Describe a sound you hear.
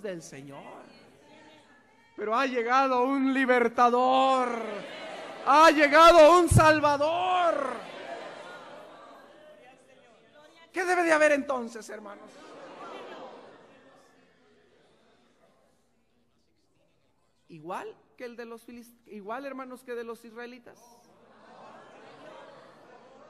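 A man preaches with passion through a microphone in a large echoing hall, pausing between phrases.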